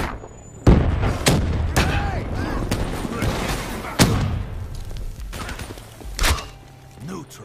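Gunfire bursts out in loud, sharp shots.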